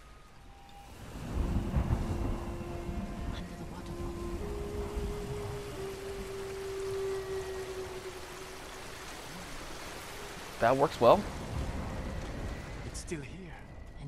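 A waterfall roars close by.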